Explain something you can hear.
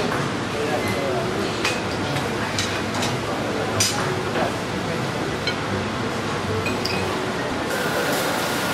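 Metal serving tongs clink against a ceramic plate.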